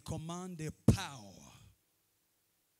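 A young man speaks into a microphone over loudspeakers in an echoing hall.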